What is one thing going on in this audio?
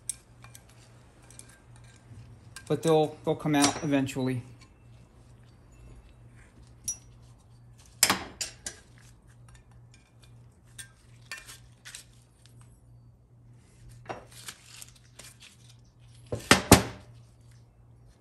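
Metal parts knock and clink against a hard surface.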